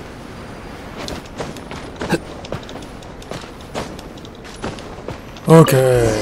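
Hands scrape and thud against stone while climbing.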